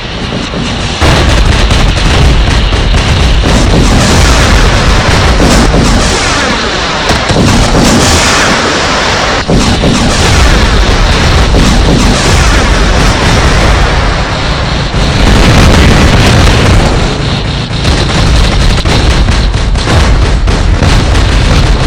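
Explosions boom loudly.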